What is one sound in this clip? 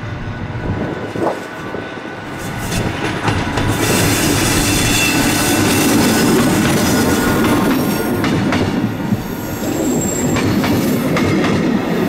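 A diesel locomotive rumbles as it approaches.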